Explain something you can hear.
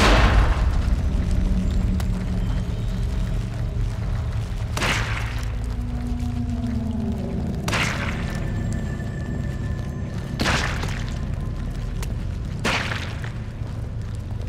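Footsteps crunch on gravel and stone.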